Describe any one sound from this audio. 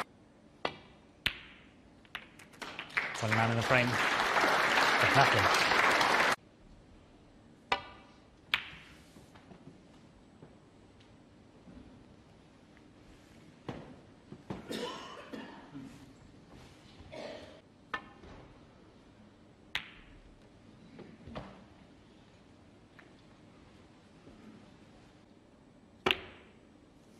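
Snooker balls click sharply against each other.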